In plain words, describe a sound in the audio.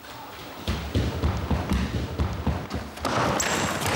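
Footsteps thump quickly across a wooden floor in an echoing hall.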